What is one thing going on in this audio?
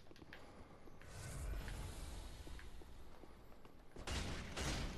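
Flames whoosh and roar.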